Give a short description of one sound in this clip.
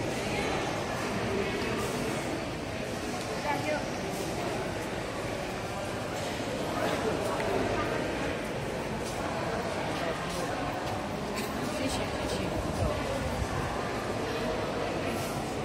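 Footsteps shuffle and tap on a hard floor.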